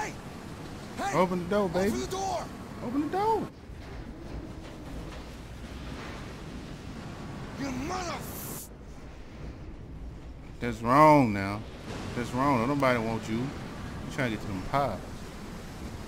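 A man shouts angrily.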